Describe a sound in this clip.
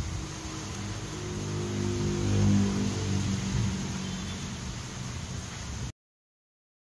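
A motorcycle engine starts and idles with a low rumble.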